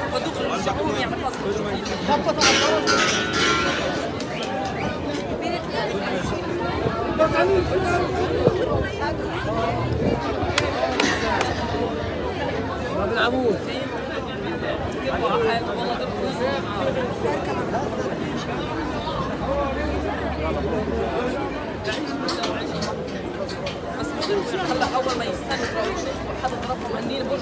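A crowd of men and women talk and call out close by, outdoors.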